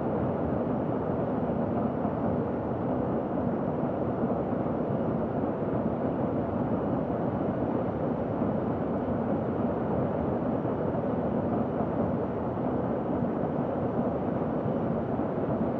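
A jet engine drones steadily with a rush of air.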